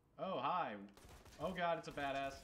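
A rifle fires in rapid shots.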